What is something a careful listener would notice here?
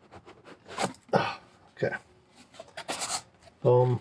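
A box lid slides off with a soft scrape.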